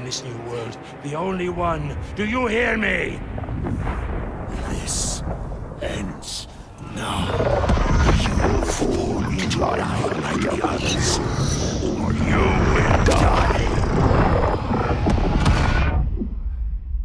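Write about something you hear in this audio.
An older man speaks menacingly in a deep, gruff voice.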